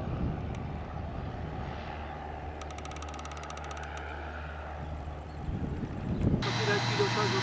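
A small propeller plane's engine drones overhead.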